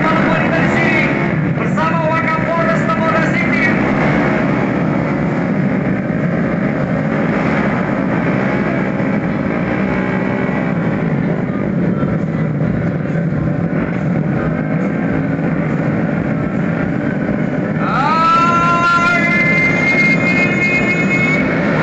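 Many motorcycle engines idle and rev loudly nearby.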